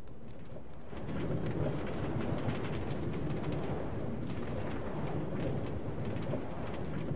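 A minecart rattles and rumbles along a track.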